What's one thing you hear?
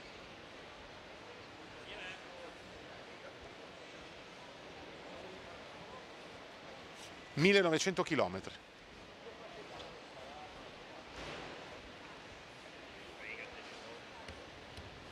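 A crowd murmurs quietly in a large echoing hall.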